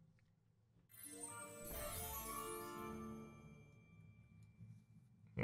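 A game chime and shimmer sound as a new round begins.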